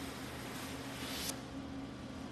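A welding torch hisses steadily, then stops.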